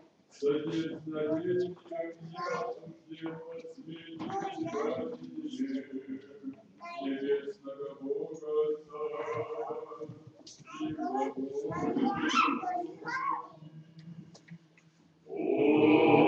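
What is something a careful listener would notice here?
A man chants a liturgy in a large echoing hall.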